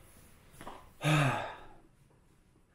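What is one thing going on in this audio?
A young man groans with his head down.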